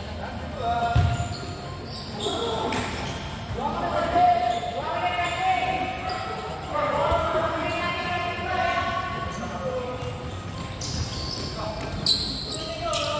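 A ball thuds when kicked.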